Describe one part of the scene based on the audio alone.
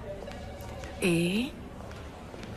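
A woman laughs briefly.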